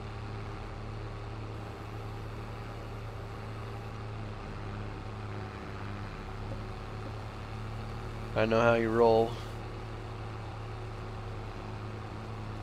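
A harvester engine hums steadily.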